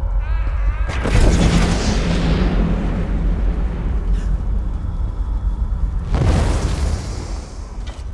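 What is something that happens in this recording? Magic blasts whoosh and crash loudly.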